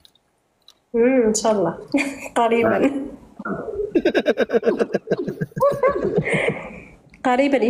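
A young woman talks and laughs over an online call.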